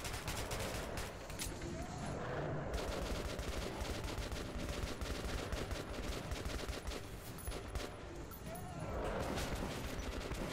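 Monsters shriek and growl close by.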